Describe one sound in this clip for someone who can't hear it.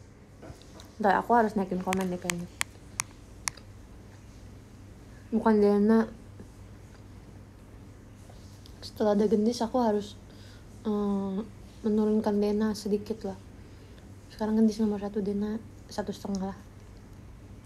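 A young woman talks softly and animatedly, close by.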